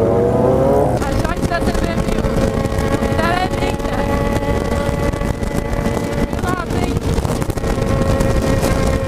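Wind rushes loudly past at high speed.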